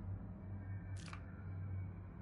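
A short electronic menu blip sounds once.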